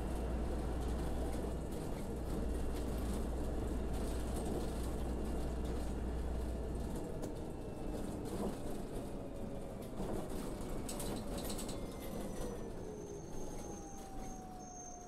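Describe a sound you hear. Tyres rumble over cobblestones.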